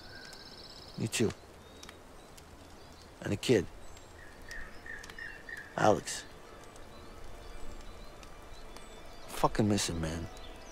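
A man answers softly and sadly, close by.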